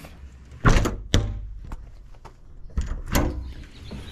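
A compartment door swings shut with a thud.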